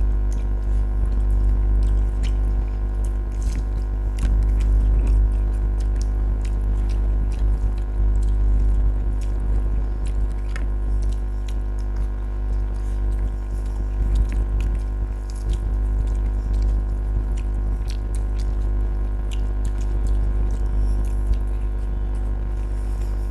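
A man chews and smacks his lips loudly and close by.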